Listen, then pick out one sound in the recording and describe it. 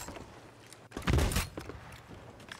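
A cannon fires with a loud boom.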